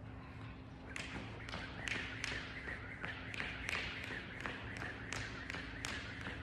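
A man's footsteps thud quickly on a rubber floor as he runs.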